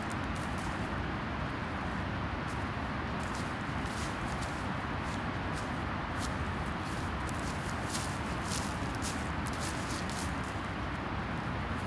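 Footsteps crunch through dry grass and leaves.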